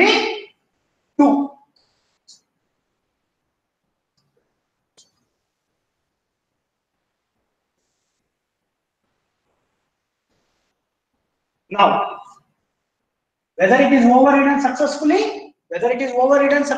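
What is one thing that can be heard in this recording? A man lectures in short bursts, close to a microphone.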